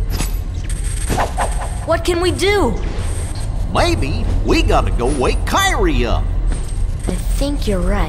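A man speaks in a goofy, drawling voice.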